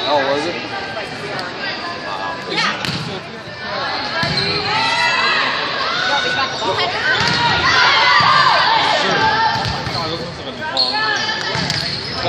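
A volleyball is hit with sharp slaps in a large echoing gym.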